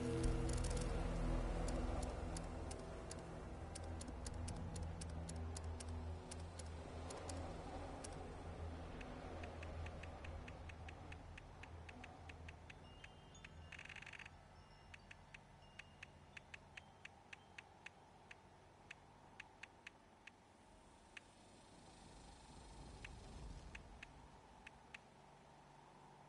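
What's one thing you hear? Soft menu clicks tick in quick runs.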